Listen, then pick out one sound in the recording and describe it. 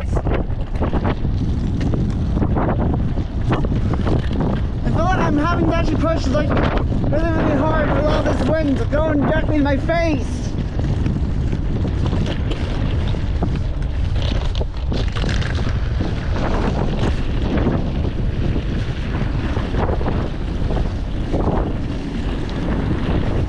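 Footsteps scuff along pavement outdoors.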